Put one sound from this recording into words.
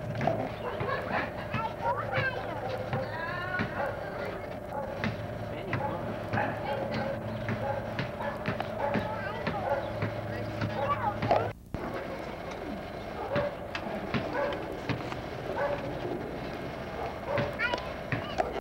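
Young children shout and chatter some distance away outdoors.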